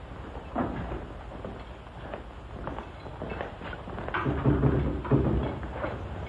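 Footsteps echo on a hard floor as men walk.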